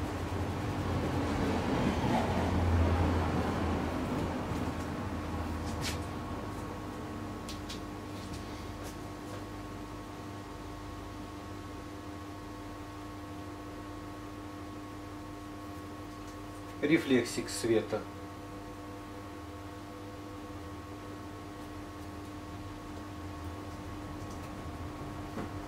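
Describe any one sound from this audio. A paintbrush softly brushes across a canvas.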